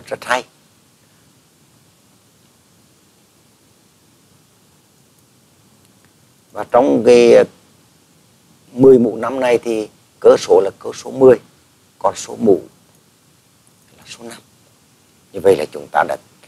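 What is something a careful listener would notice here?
An adult man speaks calmly into a microphone, in short phrases with pauses.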